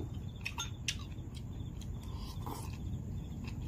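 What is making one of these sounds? A man slurps and chews food.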